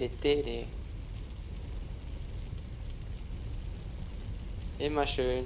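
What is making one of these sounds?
Flames roar steadily.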